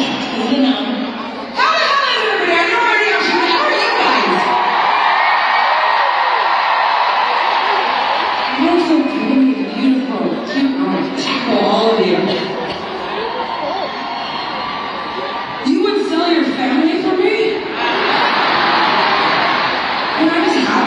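A woman sings into a microphone through loud stadium speakers.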